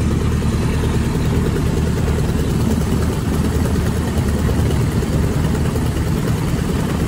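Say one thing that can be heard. An aircraft engine drones loudly and steadily close by.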